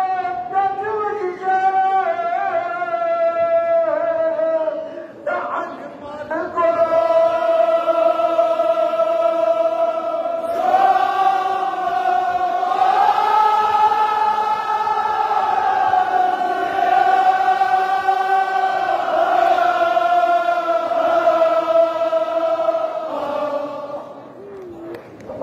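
A large crowd of men chants loudly in unison, with long drawn-out notes.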